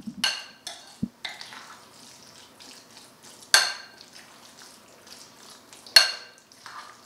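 A spoon clinks against a bowl while stirring.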